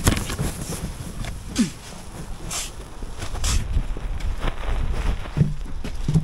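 Fur brushes and rustles right up against the microphone.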